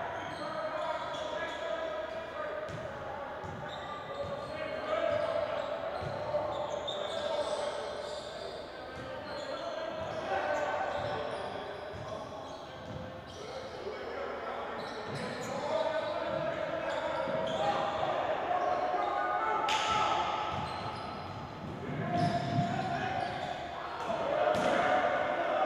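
Players shout to each other across the court.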